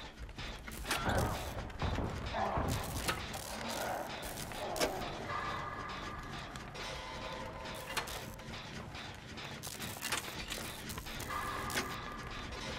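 A fire crackles and pops in a metal barrel.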